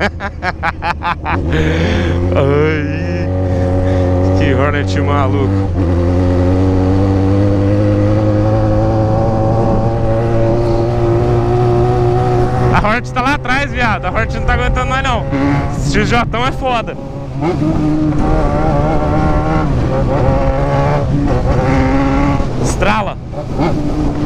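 A motorcycle engine roars steadily, rising and falling in pitch as it revs and shifts gears.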